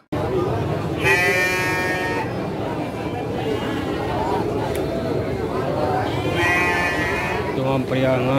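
A sheep bleats loudly nearby.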